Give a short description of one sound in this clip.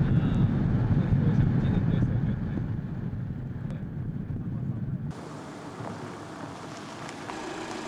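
A van rolls slowly over gravel.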